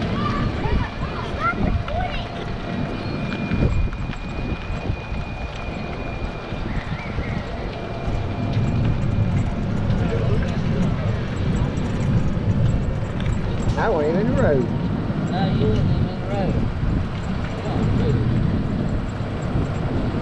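Tyres roll along a paved road.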